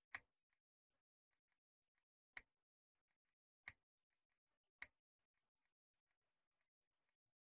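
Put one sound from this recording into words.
Short sharp clicks sound now and then as a menu list scrolls.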